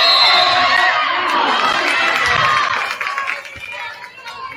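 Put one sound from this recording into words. A crowd cheers and shouts loudly in a large echoing gym, then quiets down.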